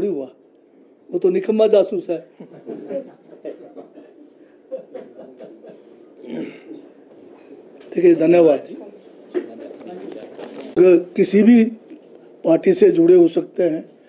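A middle-aged man speaks calmly into a microphone at close range.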